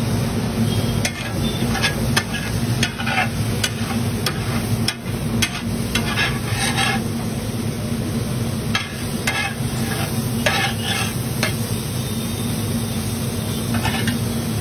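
A metal spatula scrapes and clatters against a hot griddle.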